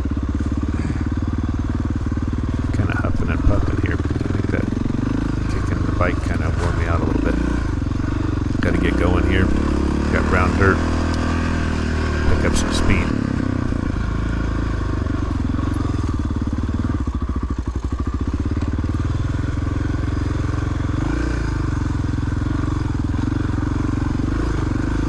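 Tyres churn through mud and slush.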